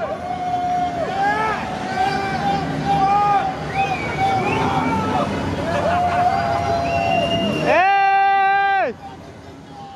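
A car engine revs loudly, rising and falling in pitch.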